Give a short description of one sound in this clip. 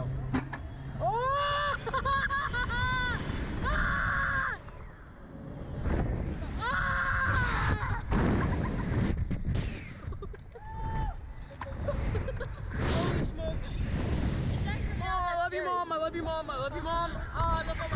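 A boy screams and shouts loudly, close by.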